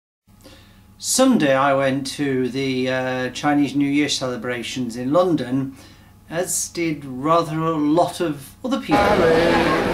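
A man talks calmly and close up, facing the listener.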